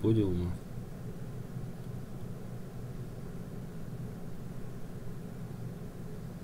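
A pencil scratches lightly on paper.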